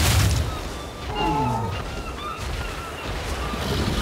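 A large beast roars loudly nearby.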